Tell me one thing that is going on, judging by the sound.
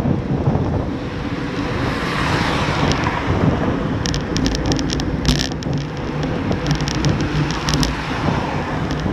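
Wind rushes loudly past a microphone while cycling outdoors.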